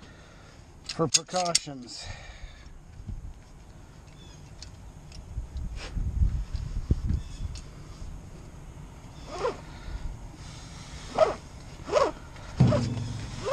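A ratchet strap clicks as it is cranked.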